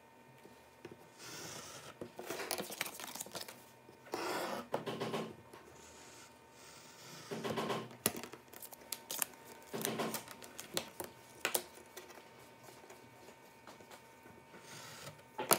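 A knife scrapes and scores along paper.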